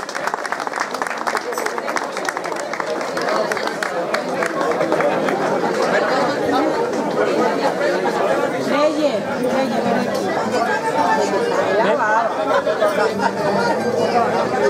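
A choir of women and men sings together.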